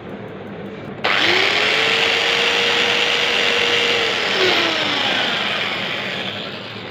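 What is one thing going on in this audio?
An electric drill whirs loudly, boring into wood, then winds down.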